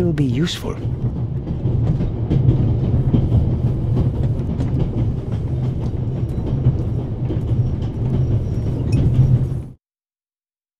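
A train rumbles steadily along the tracks, then falls silent.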